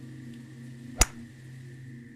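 A golf ball is struck with a sharp click.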